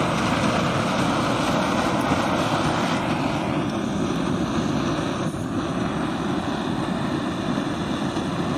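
A small gas stove burner roars steadily.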